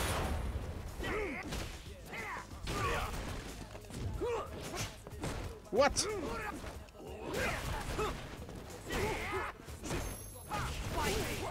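Punches and kicks land with sharp thuds.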